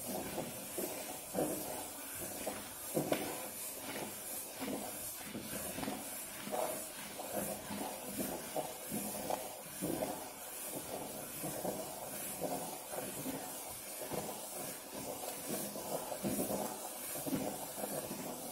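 Fingers squish and rub through a crumbly mixture in a metal bowl.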